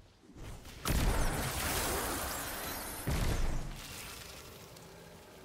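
Heavy blasts and crackling bursts go off loudly.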